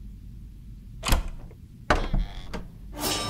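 Metal pliers clank against a door lock.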